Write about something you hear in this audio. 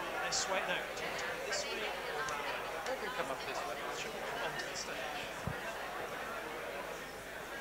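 A crowd of men and women chatter all around in a large echoing hall.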